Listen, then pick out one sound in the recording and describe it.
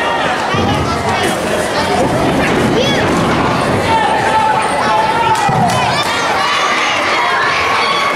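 Children and women in the crowd scream with excitement.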